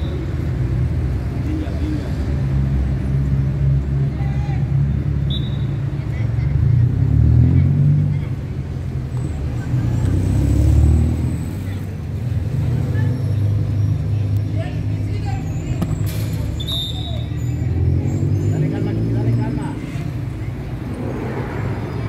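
Young men shout to each other in the distance outdoors.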